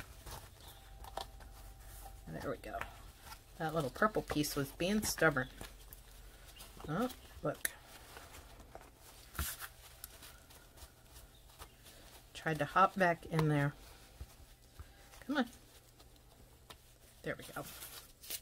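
A cloth rubs against a plastic mold.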